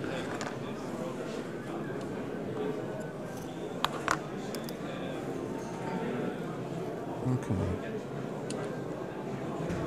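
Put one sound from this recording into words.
Metal tweezers tap and scrape lightly on a hard board.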